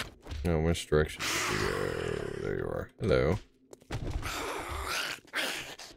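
A zombie groans and growls nearby.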